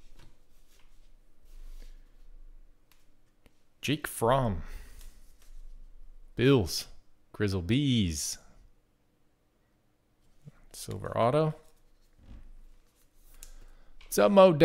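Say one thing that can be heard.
Stiff cards slide and rustle between hands.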